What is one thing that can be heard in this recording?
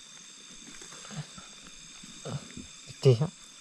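A plastic bag crinkles as hands handle it.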